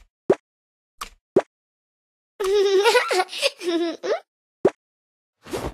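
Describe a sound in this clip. Short bright blips sound as options are tapped in a game.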